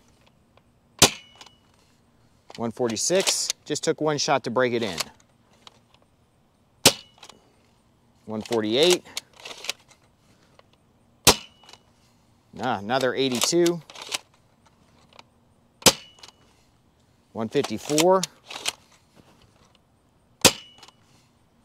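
A toy blaster fires with a sharp snap, again and again.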